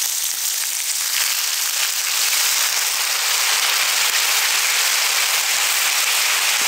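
Liquid pours into a hot pan and hisses loudly.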